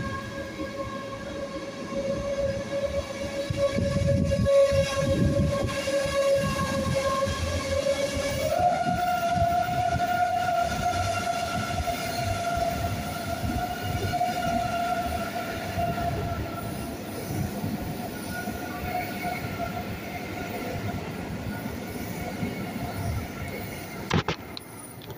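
A high-speed train rushes past close by with a rumbling roar.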